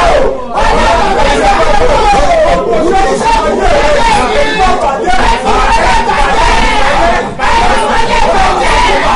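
A man speaks loudly and with fervour into a microphone, close by.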